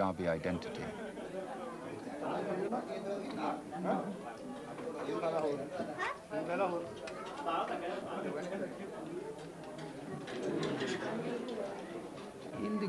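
Many people chatter and murmur in a busy room.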